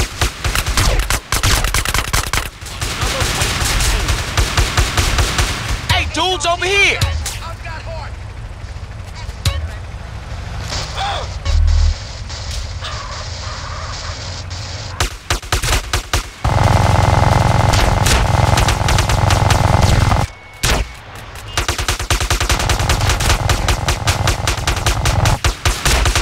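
Guns fire in rapid bursts close by.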